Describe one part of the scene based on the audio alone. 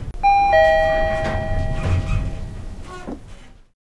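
Elevator doors slide open.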